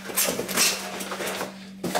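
A utility knife slices through packing tape.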